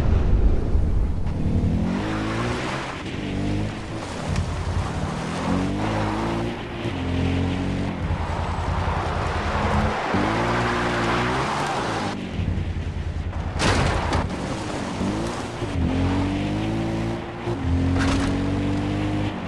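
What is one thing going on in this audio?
A quad bike engine revs up and down as it drives over rough ground.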